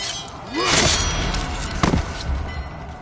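Steel swords clash and clang sharply.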